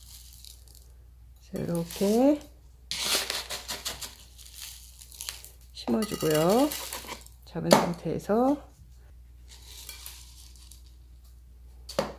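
Gravel pours and rattles into a pot.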